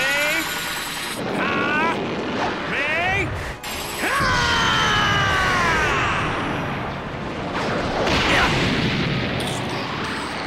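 An energy blast roars and crackles.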